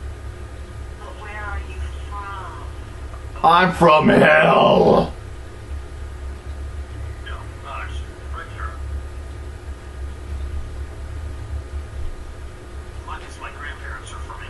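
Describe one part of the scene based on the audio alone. A man speaks in short bursts close by, once loudly.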